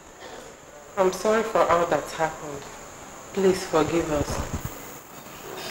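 A young woman speaks tensely, close by.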